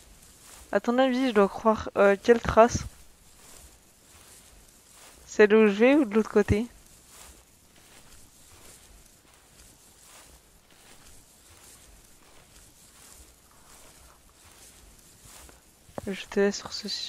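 Footsteps crunch through snow and undergrowth.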